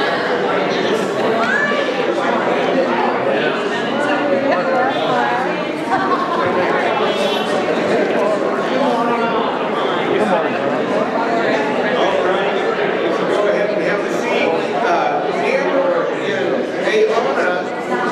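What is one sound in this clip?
Many adults chatter at once in a large echoing hall.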